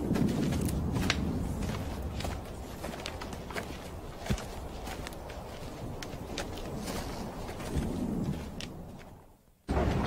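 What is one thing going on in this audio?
Footsteps crunch on leaves and twigs as several people walk.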